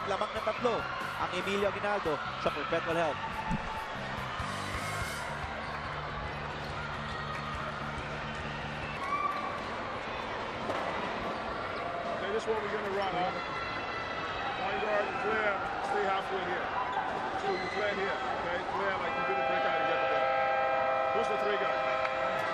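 A crowd murmurs and chatters in a large echoing arena.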